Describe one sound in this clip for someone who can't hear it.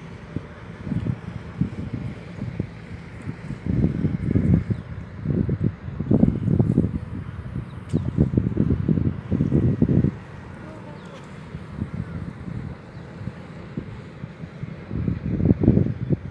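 Wind gusts rumble outdoors.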